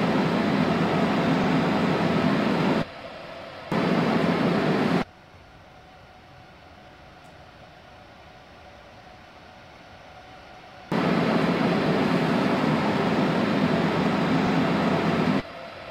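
A train's wheels rumble steadily along the rails.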